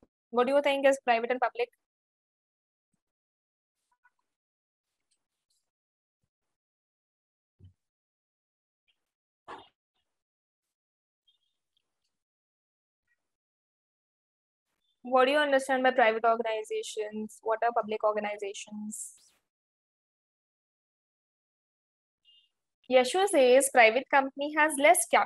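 A young woman speaks calmly through a close microphone, with pauses.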